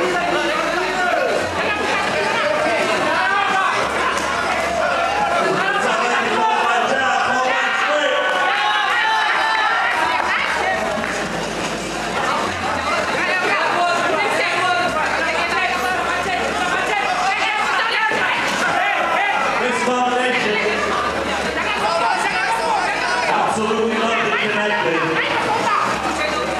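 A crowd cheers and shouts loudly throughout.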